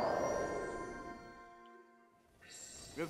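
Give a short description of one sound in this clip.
A magical shimmering chime rings out and fades away.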